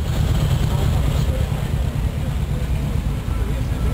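A motor trike's engine rumbles as it rolls slowly past.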